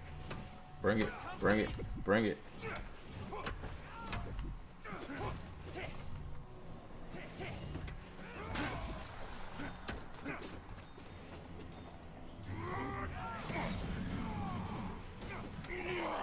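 Game combat effects crackle and whoosh.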